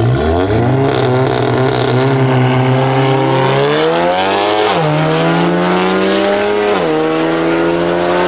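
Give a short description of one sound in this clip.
A car engine roars loudly as it accelerates hard, its pitch rising and dropping with each gear change.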